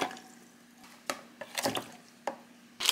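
Sausages drop into a bowl of water.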